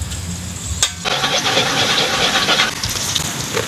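Food sizzles and hisses in a hot wok.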